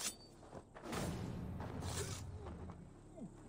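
A blade stabs into a body with a wet thud.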